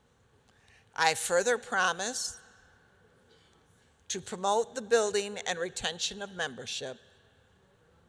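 A group of older adults recite a pledge together in a large echoing hall.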